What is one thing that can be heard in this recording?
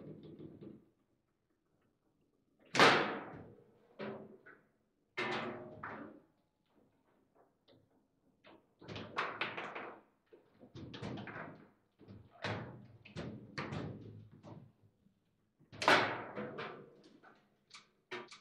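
Metal rods rattle and clack as they are spun and slid.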